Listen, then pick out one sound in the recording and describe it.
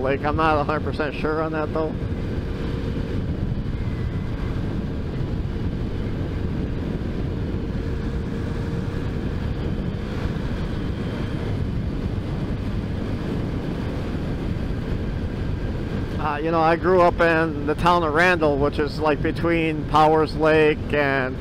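Wind roars steadily past a moving motorcycle.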